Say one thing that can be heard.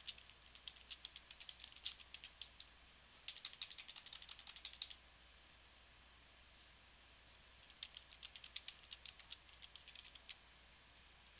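Keys click rapidly on a computer keyboard.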